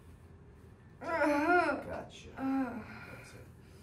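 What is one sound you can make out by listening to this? A young woman laughs loudly close by.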